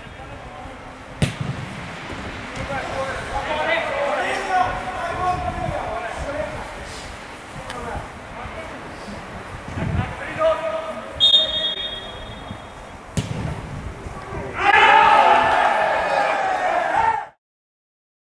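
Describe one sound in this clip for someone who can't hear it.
Football players shout to each other from across an outdoor pitch.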